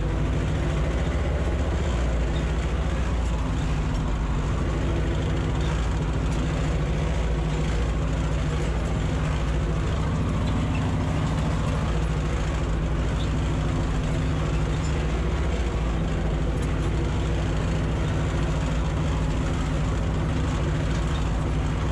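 A tractor engine runs with a steady, loud drone up close.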